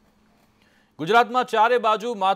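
A man speaks calmly and clearly into a microphone, like a news presenter.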